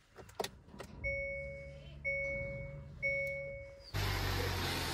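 A car's dashboard chime beeps three times in a row.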